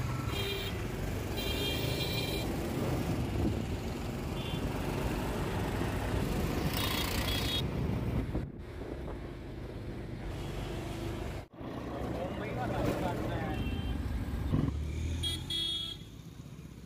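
Vehicle horns honk in short bursts nearby.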